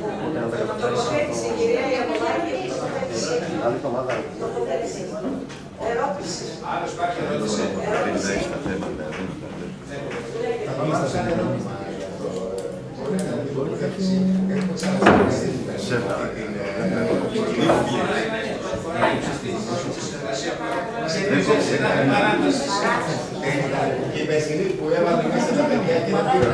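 An elderly man speaks steadily into a microphone.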